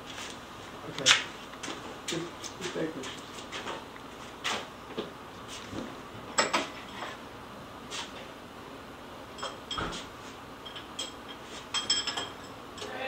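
Metal chains clink and rattle.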